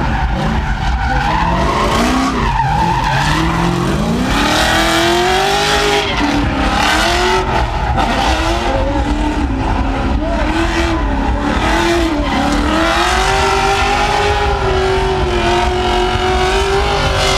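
Tyres screech as cars drift.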